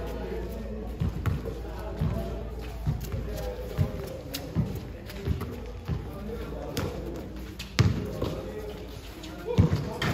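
A basketball bounces repeatedly on a concrete court outdoors.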